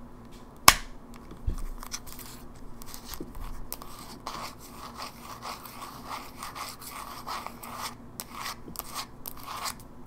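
Fingernails tap and scratch on a metal handheld console's casing, close up.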